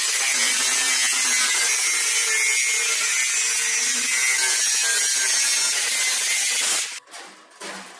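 An angle grinder screeches loudly as it cuts through metal.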